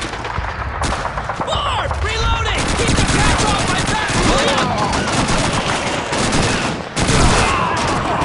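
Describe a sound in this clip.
A man shouts nearby.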